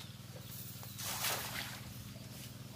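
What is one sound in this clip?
Water splashes as a log drops into a pond.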